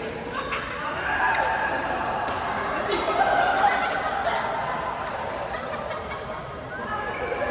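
Shuttlecocks are struck with rackets in a large echoing hall.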